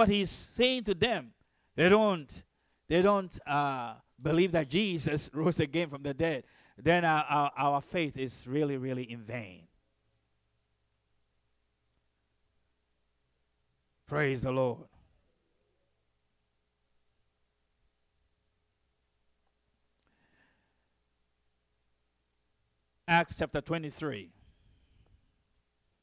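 A man preaches with animation through a microphone, with long pauses.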